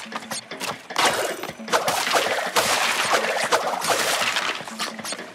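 Wooden crates smash and crack.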